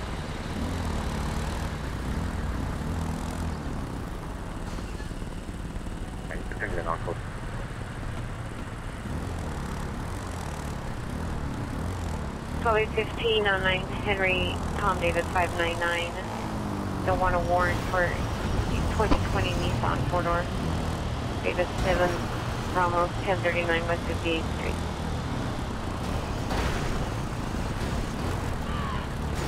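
Motorcycle engines hum steadily as the riders cruise along.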